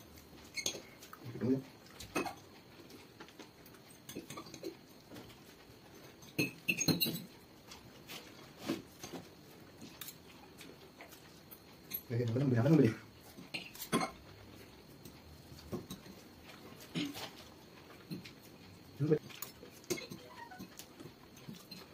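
Spoons clink and scrape against plates.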